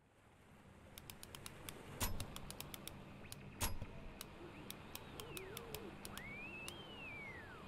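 Menu selections click softly, one after another.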